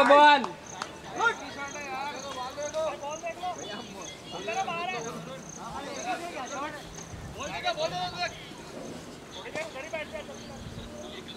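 Men talk and call out across an open field.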